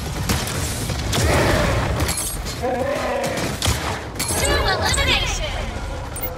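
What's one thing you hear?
Weapons fire and blast in quick bursts.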